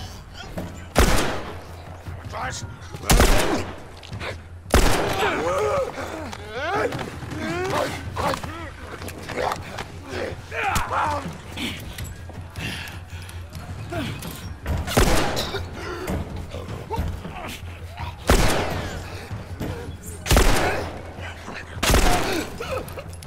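Pistol shots ring out one by one, sharp and loud.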